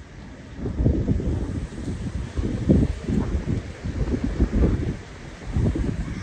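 Wind gusts outdoors, buffeting loudly in bursts.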